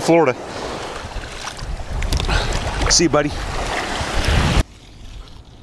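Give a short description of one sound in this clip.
Water splashes around wading legs.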